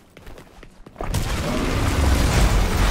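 A fiery blast erupts and roars.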